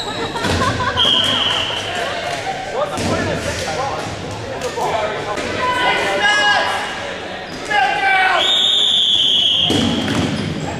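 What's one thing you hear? A whistle blows sharply.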